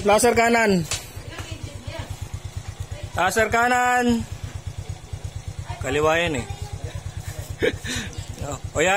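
A motorcycle engine idles with a steady, low putter.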